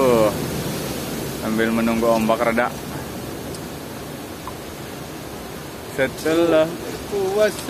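Waves crash and wash over rocks steadily.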